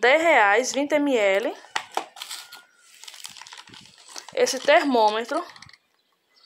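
Small cardboard boxes rustle and tap as a hand handles them.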